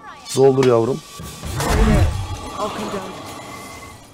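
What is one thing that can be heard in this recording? A loud magical blast roars and whooshes.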